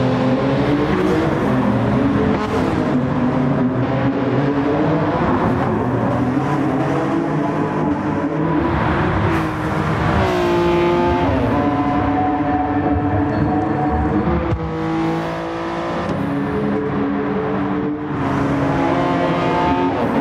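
A racing car engine roars loudly, revving up and dropping in pitch at each gear change.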